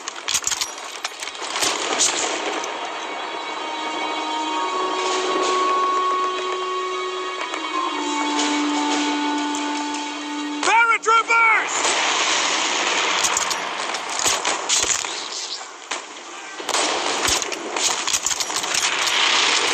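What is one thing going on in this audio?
A sniper rifle fires sharp shots.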